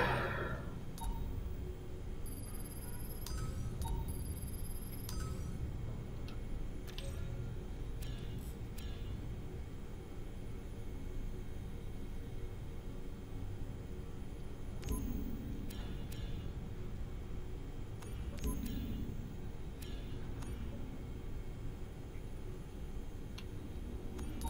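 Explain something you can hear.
Menu selections click and beep softly.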